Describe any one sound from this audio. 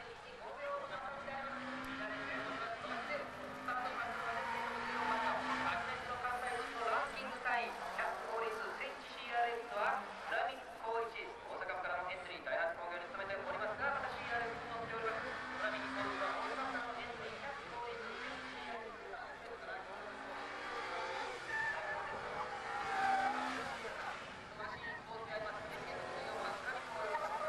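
A rally car engine revs and roars as the car slides through tight corners.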